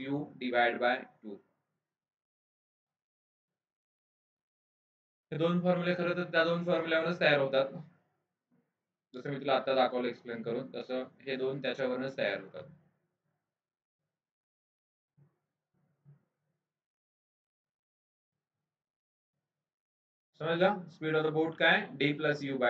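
A man explains calmly into a close microphone, with pauses.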